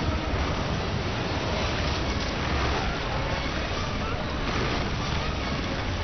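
Water splashes and crashes heavily.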